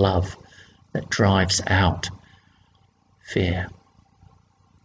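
An older man speaks calmly and closely into a microphone.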